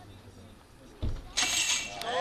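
A starting gate drops with a sharp clack.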